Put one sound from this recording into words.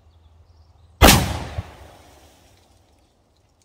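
A shotgun fires once with a loud blast that echoes outdoors.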